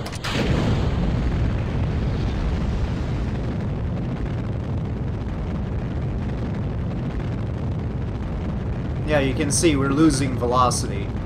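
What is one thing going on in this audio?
A rocket engine roars steadily with a deep rumble.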